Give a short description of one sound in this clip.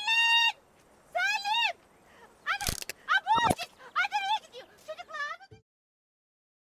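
A woman cries out and wails loudly in distress.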